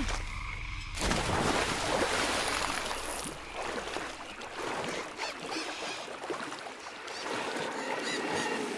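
Water splashes and churns as a swimmer wades and swims through it.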